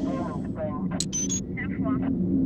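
A coin clicks onto pavement.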